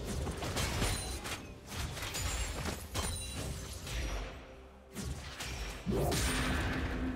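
Spells whoosh and crack in a fantasy battle game.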